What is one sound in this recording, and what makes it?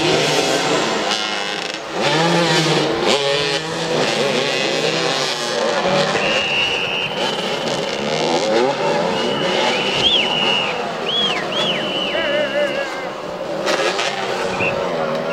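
Several motorcycle engines rev and buzz outdoors.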